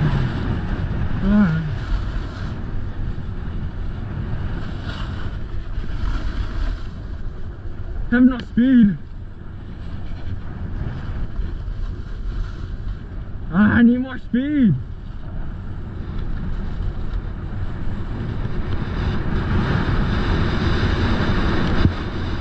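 A snowboard scrapes and hisses over hard-packed snow.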